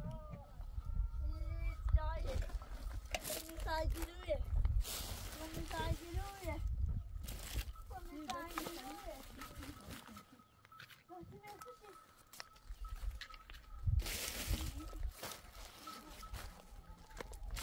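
Plastic wrappers rustle and crinkle as a hand gathers rubbish.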